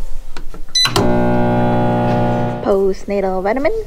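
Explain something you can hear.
A microwave hums steadily.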